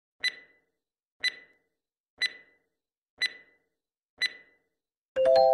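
A timer ticks once each second.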